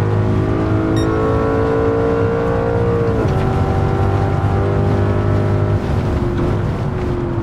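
A racing car engine roars at high revs, with the pitch dropping at each gear shift.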